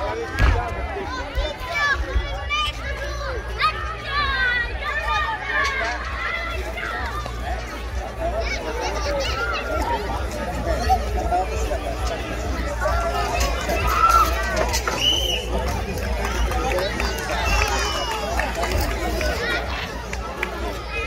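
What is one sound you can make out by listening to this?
A crowd of children and adults chatters and cheers outdoors.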